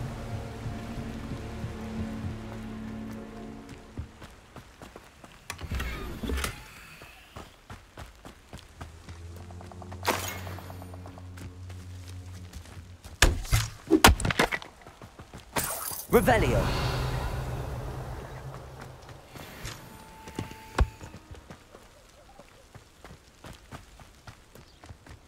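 Footsteps run over dirt and wooden boards.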